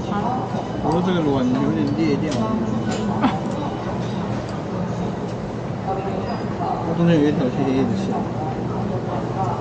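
Chopsticks scrape and tap against a bowl.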